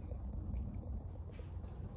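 A fire crackles inside a metal stove.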